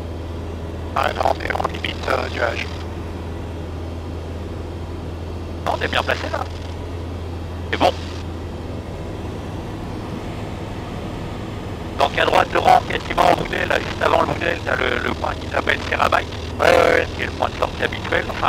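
A young man speaks calmly over a headset intercom.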